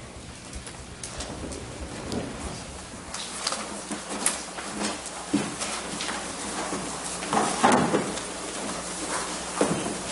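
Footsteps and shuffling sound as people walk across a floor.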